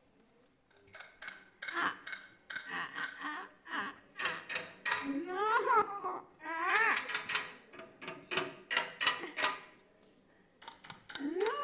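A drummer taps quickly on drums and cymbals.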